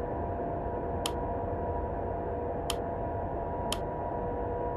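Short electronic clicks sound a few times.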